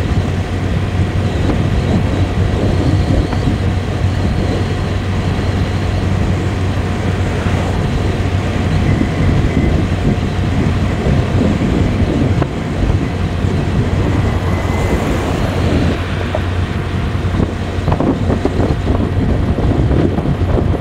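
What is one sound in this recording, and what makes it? Tyres roll steadily on asphalt.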